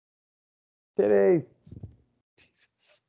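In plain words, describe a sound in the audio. A man speaks briefly with a rising, drawn-out tone over an online call.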